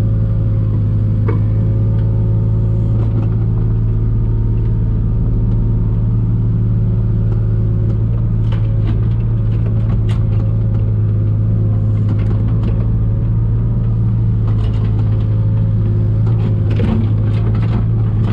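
A diesel excavator engine drones steadily up close.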